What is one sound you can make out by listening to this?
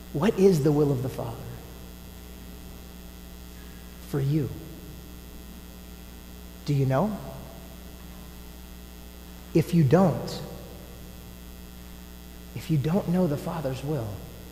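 A man chants in short phrases through a microphone in a large echoing hall.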